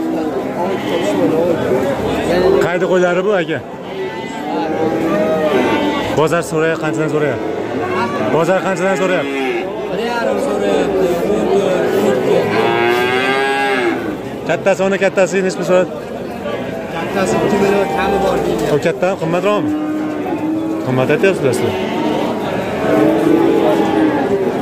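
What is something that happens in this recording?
Many sheep bleat loudly and close by, calls overlapping.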